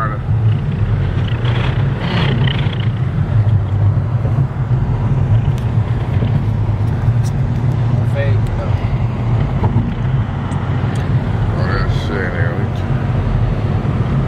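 A car engine hums steadily with road noise from inside a moving car.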